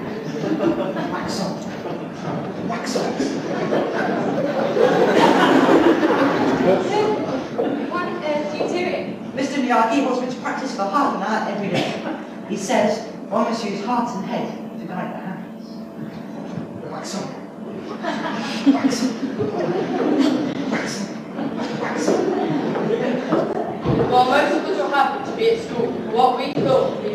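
A young man sings with animation in an echoing hall.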